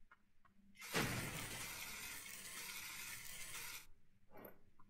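A laser cutter hisses steadily against metal.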